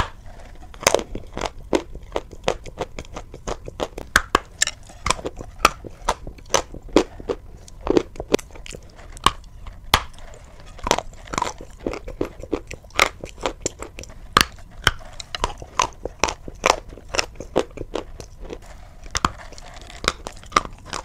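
A woman chews wetly with her mouth close to a microphone.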